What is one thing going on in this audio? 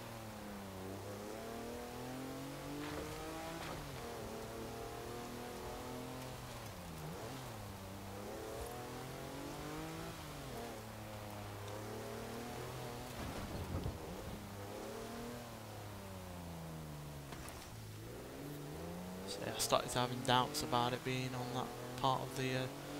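A truck engine revs up and down.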